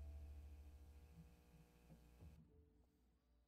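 A violin plays a low sustained note that fades away.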